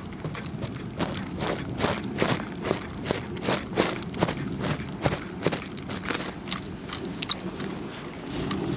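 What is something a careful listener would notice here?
A fishing reel ticks rapidly as its handle is turned.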